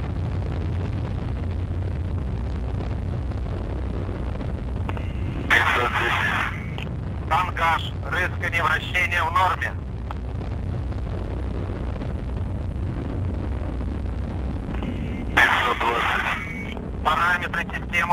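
A rocket engine rumbles low and steadily.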